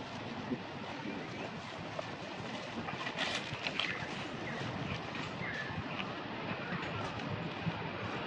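Dry leaves rustle as monkeys scamper over the ground.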